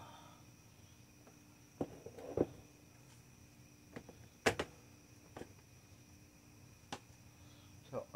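Plastic trays clatter and knock as they are stacked.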